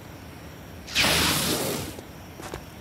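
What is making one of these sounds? A laser rifle fires a loud, crackling burst.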